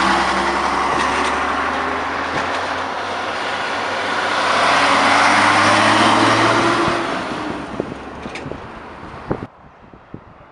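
An old truck's diesel engine rumbles loudly as it drives past and fades.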